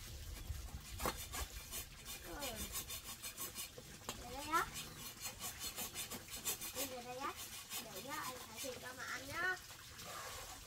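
A small child babbles and calls out in a high voice nearby.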